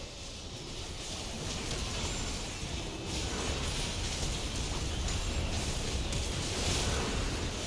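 Magic spells crackle and blast in a chaotic fight.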